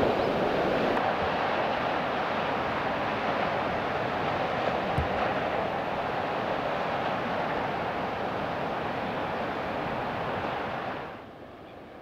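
Wind blows through grass.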